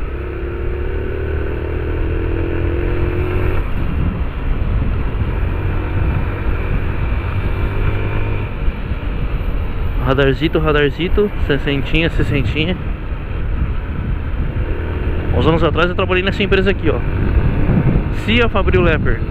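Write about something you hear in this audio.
A single-cylinder 250 cc motorcycle engine hums as the bike cruises through traffic.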